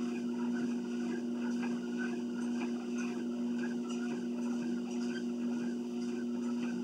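A treadmill motor hums.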